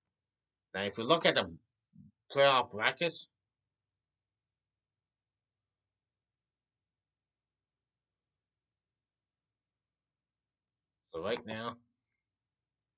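A young man speaks calmly and close up, with long pauses.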